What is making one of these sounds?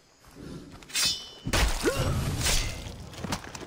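A knife stabs into a body with a heavy thud.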